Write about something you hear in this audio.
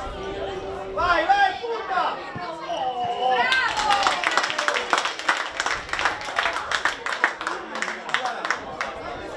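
Spectators cheer and shout excitedly.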